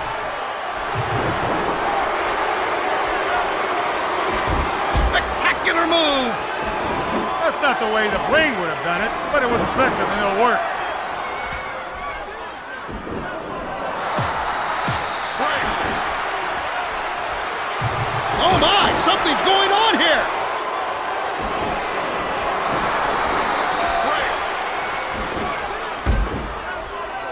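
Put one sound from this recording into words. Heavy thuds ring out as wrestlers slam onto a ring mat.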